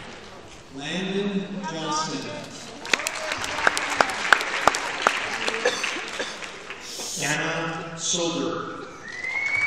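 A man speaks over a loudspeaker in a large hall, reading out names.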